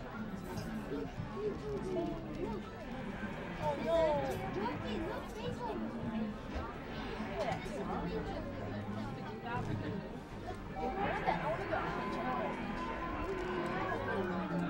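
An arcade game plays music and fight sounds from its speaker.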